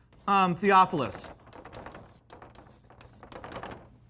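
A marker squeaks on a board.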